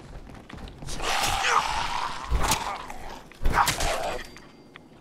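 A creature shrieks and snarls up close.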